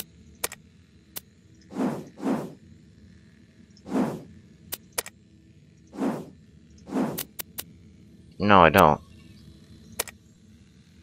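Video game menu clicks sound as pages are switched.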